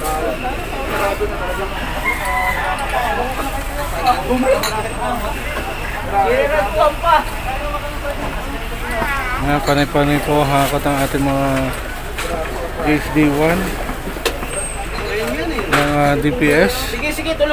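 Plastic bags of rubbish rustle as they are handled.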